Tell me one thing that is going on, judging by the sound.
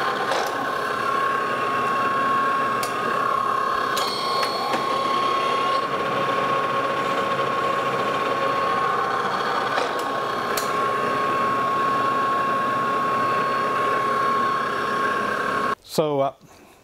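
A metal lathe runs with a steady high whine.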